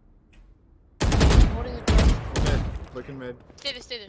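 Gunshots crack loudly.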